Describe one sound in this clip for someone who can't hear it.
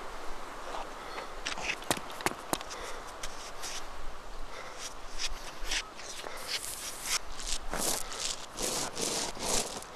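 Footsteps crunch on grass and dry leaves.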